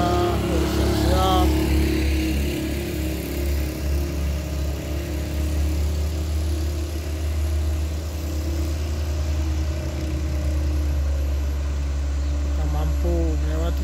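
A heavy truck engine labours steadily uphill, drawing closer.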